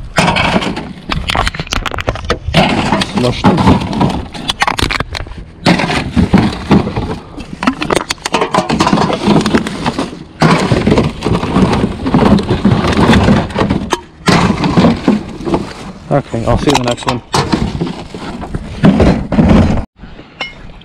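Plastic bags and wrappers rustle and crinkle as a hand rummages through a bin.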